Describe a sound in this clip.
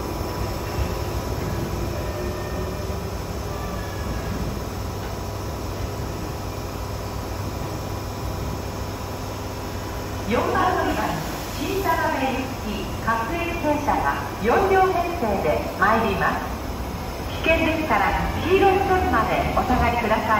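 A train rumbles slowly into a station.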